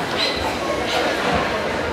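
A young woman's bare feet thump softly on a mat.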